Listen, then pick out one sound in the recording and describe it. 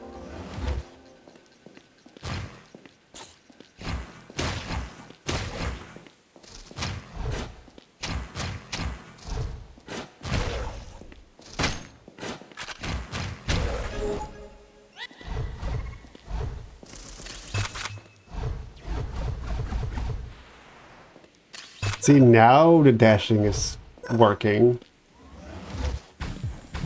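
Sword slashes and hits land in quick bursts.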